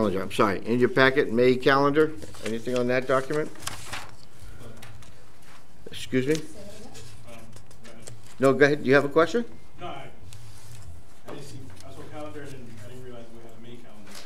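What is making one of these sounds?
Adults speak calmly through microphones, with pauses between them.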